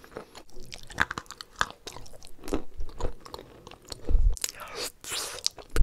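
A woman slurps a drink from a glass.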